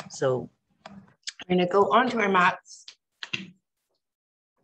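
A young woman speaks close by, with animation.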